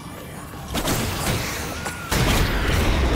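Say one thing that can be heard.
A magical blast bursts with a crackling whoosh.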